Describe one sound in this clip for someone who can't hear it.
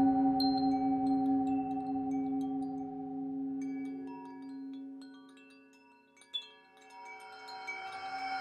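A metal singing bowl rings with a steady, humming tone as a mallet is rubbed around its rim.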